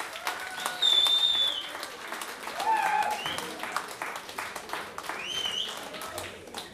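A listener in the audience whistles loudly and shrilly.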